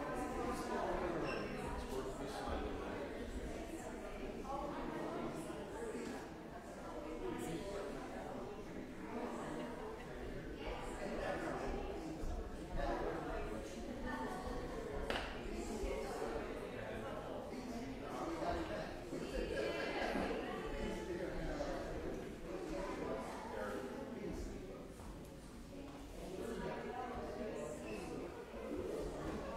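Men and women murmur and chat nearby in a large echoing room.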